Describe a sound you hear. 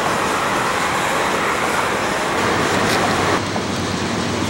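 A freight train rumbles and clatters past on the tracks.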